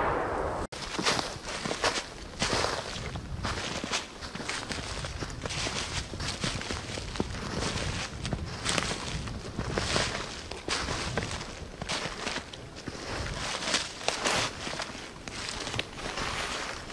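Footsteps crunch through snow and dry leaves.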